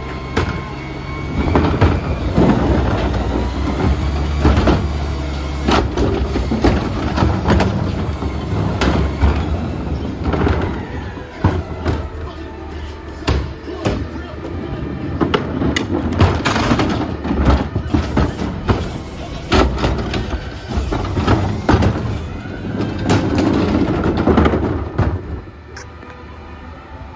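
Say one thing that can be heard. Plastic bins bang and clatter against a metal container.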